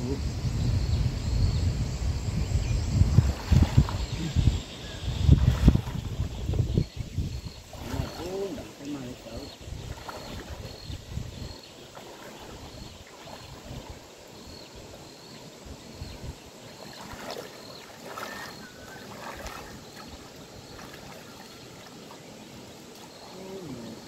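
Water splashes as a man wades through a shallow river.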